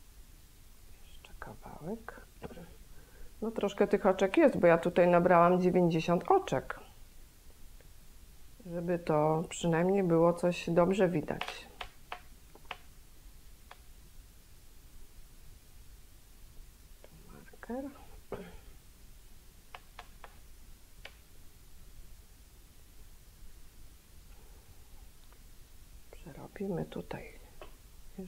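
A middle-aged woman speaks calmly and close into a microphone.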